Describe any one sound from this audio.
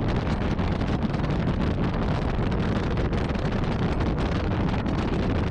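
Wheels rumble and roll over rough asphalt.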